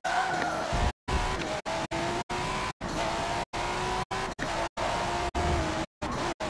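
A racing car engine roars as the car speeds up.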